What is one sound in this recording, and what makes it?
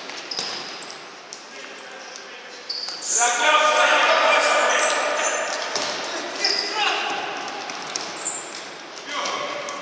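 A ball thuds off a player's foot.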